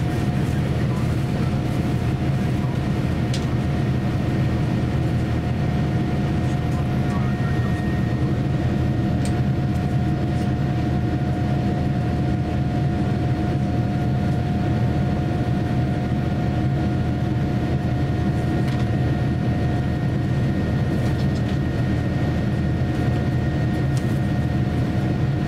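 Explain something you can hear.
A jet engine roars steadily from inside an airliner cabin.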